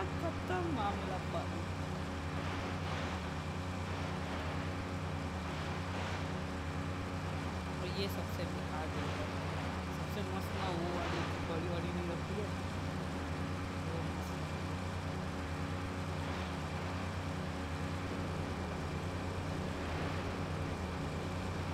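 A speedboat engine drones steadily.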